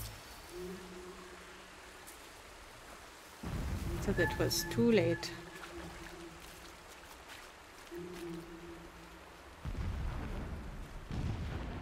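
Footsteps rustle through tall grass and leaves.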